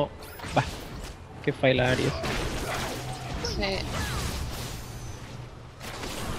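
Video game combat sound effects of spells and hits ring out.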